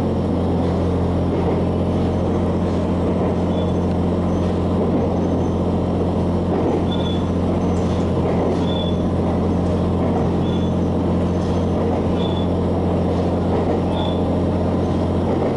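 A train hums and rumbles steadily while running.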